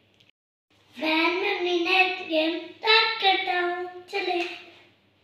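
A young boy speaks brightly and clearly, close by.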